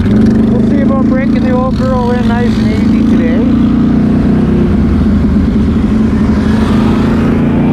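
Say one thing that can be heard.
A quad bike engine drones steadily up close.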